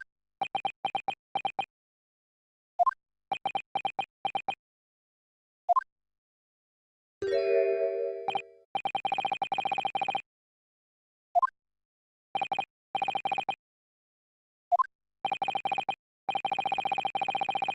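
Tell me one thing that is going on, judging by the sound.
Rapid electronic blips chatter in short bursts.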